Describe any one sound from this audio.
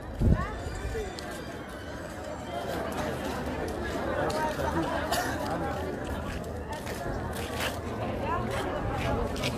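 A crowd murmurs and calls out in the distance, outdoors.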